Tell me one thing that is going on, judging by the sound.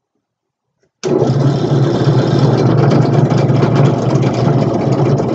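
A drill bit grinds into wood.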